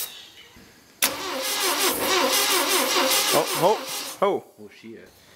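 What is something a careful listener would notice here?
A car engine runs with a loud, rough idle.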